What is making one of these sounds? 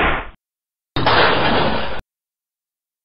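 A missile explodes with a loud roaring blast.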